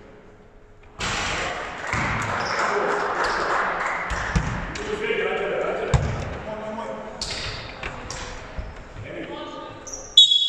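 Young men call out and shout to each other across a large echoing hall.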